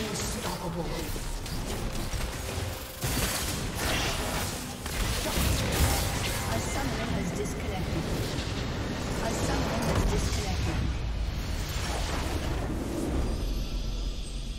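Spell and weapon effects clash and crackle in a busy fight.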